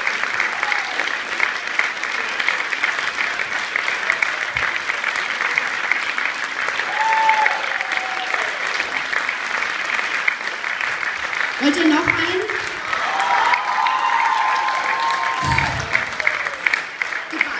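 Loud clapping goes on steadily in a large echoing hall.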